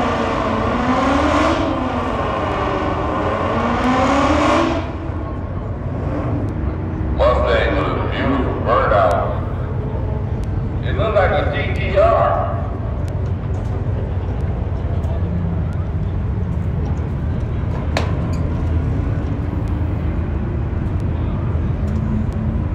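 Car engines idle with a low, steady rumble.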